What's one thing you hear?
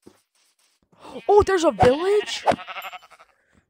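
A horse neighs.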